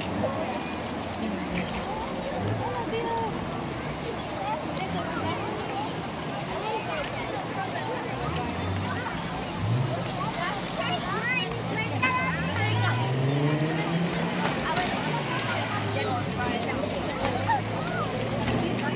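A crowd of men, women and children talks and murmurs outdoors close by.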